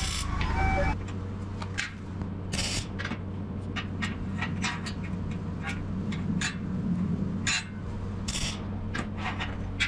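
An arc welder crackles in short, sharp bursts.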